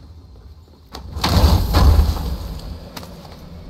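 A chest bursts open with a loud rush and a clatter.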